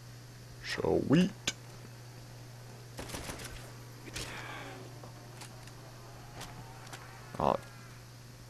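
A rifle bolt clacks as it is worked and reloaded.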